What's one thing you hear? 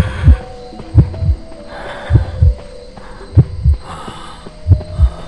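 Footsteps thud as a figure runs.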